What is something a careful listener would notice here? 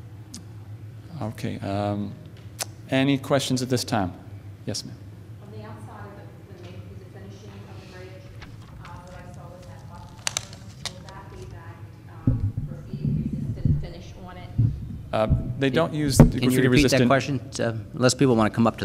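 A young man speaks into a microphone over a loudspeaker in a large echoing hall.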